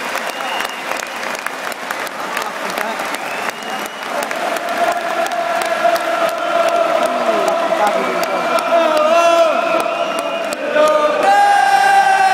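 A large stadium crowd sings loudly together in a wide open space.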